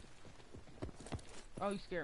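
Footsteps thud on stone stairs.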